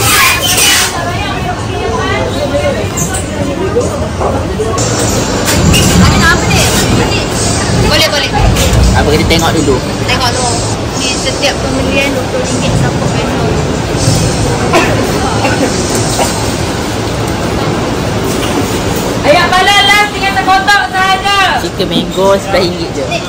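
People chatter in a busy indoor space.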